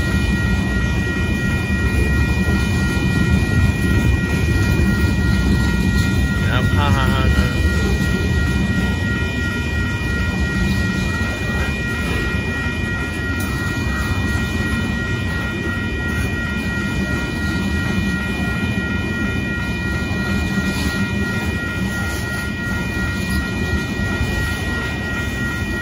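A railway crossing bell rings steadily.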